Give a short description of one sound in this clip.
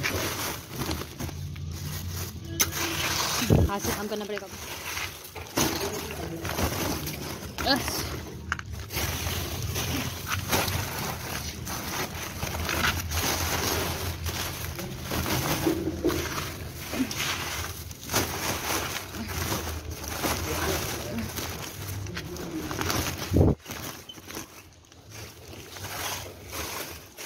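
A paper sack crinkles and rustles as hands rummage inside it.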